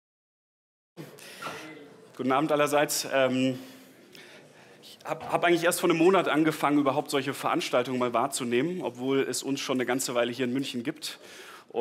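A man speaks with animation through a microphone in a room.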